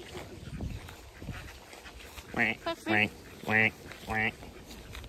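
Footsteps swish through long grass.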